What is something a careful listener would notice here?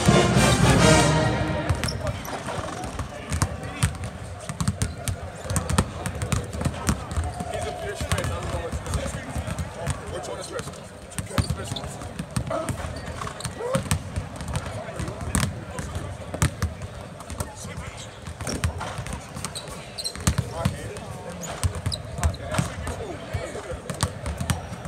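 Basketballs bounce on a hardwood floor, echoing in a large hall.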